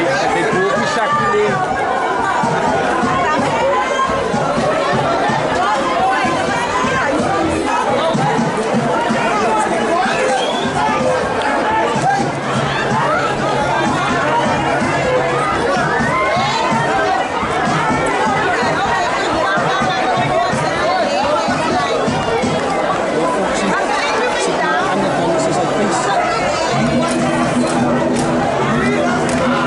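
A crowd of spectators chatters and calls out nearby.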